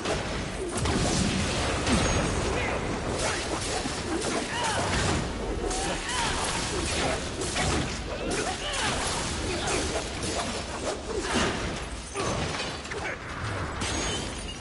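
A whip lashes and strikes with sharp cracks.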